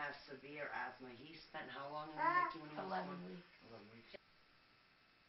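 Two young women talk quietly nearby.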